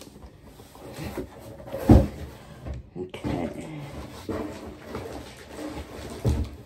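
A woman speaks casually close by.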